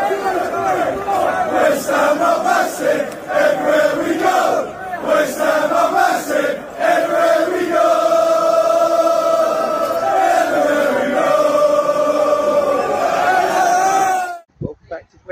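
A large crowd sings and chants loudly outdoors.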